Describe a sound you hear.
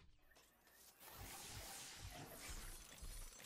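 Electricity crackles and sparks loudly.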